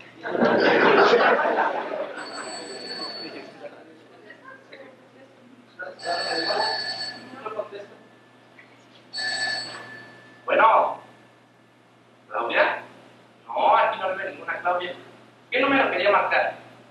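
A young man speaks loudly in an echoing hall.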